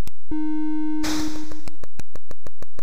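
A hissing burst of electronic noise rushes and fades.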